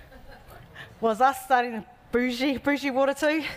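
A woman speaks warmly into a microphone.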